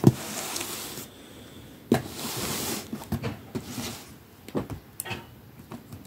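A cardboard box slides and thumps on a soft bed.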